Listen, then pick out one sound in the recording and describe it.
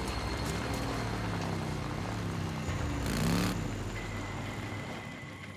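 A motorcycle engine rumbles and revs.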